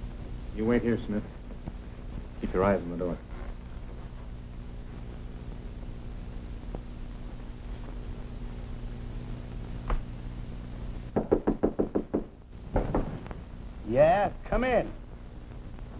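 A man speaks in short, low phrases close by.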